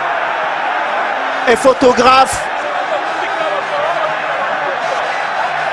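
A large crowd roars and shouts steadily in a stadium.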